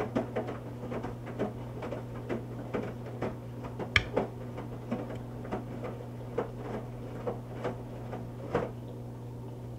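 Clothes and water thump and slosh inside a tumbling washing machine drum.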